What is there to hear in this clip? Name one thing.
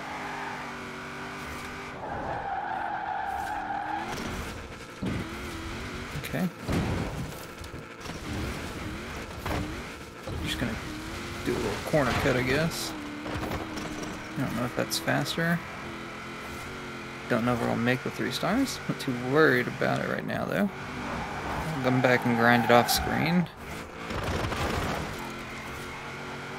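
A car engine roars and revs at high speed.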